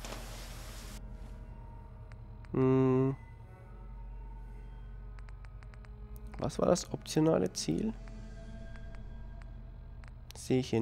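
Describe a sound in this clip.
A handheld device clicks softly as buttons are pressed.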